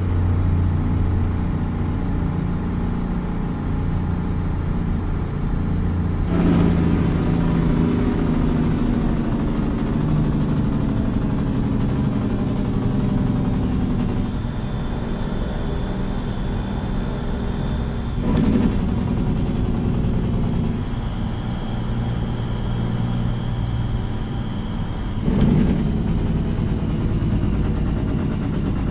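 A truck's diesel engine rumbles steadily as it drives.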